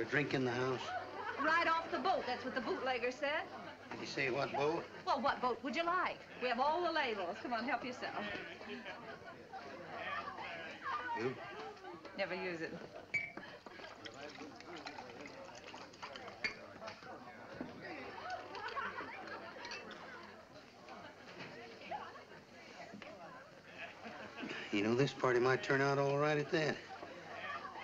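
A crowd of men and women chatters and laughs in the background.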